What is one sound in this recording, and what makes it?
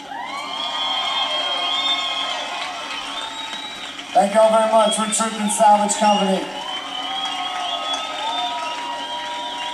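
A crowd cheers and whistles loudly outdoors.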